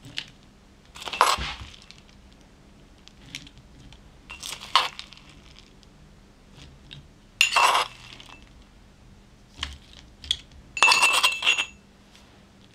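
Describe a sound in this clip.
Chopped nuts rustle and patter as they are spooned out.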